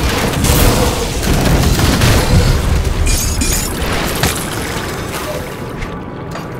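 Magic spells and blows crash and boom in a fast fight.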